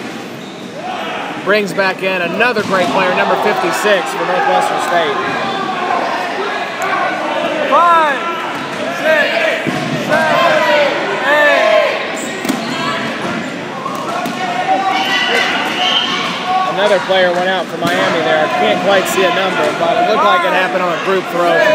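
A crowd of young people shouts and cheers, echoing in a large hall.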